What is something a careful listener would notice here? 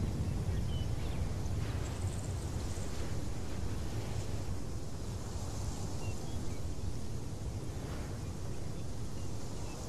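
A jet plane's engines rumble low in the distance.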